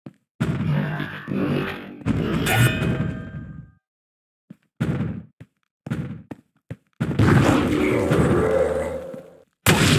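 Blows thud as two creatures fight in a game.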